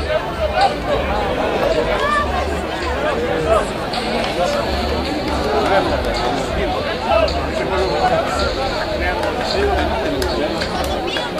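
Rugby players shout to each other across the field.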